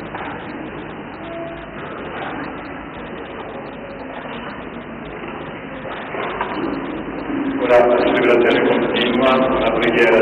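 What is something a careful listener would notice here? A woman reads aloud into a microphone in an echoing hall.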